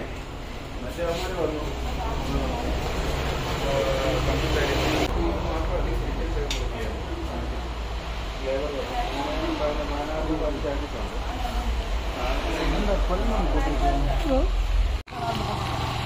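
Several men talk nearby.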